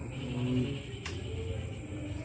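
A cue ball is struck sharply with a cue.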